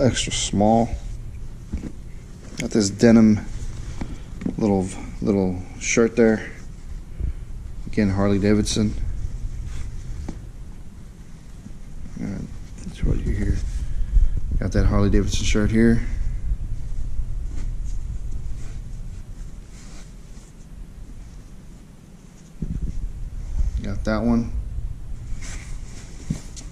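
Clothing rustles as hands lift it in a cardboard box.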